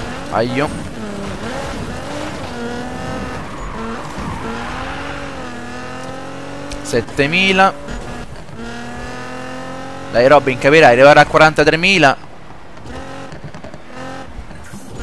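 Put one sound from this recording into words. A sports car engine roars and revs up and down at high speed.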